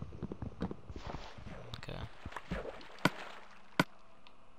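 Water swishes and splashes.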